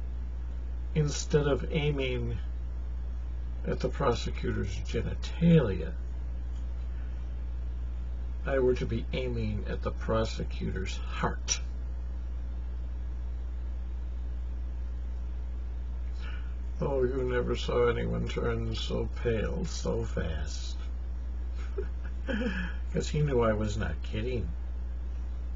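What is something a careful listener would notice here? An elderly man speaks calmly and close to the microphone, with pauses.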